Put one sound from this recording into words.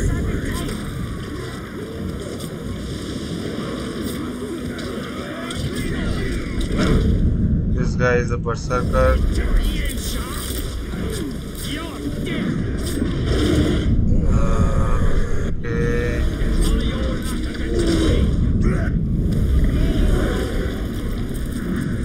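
A crowd of creatures growls and shouts nearby.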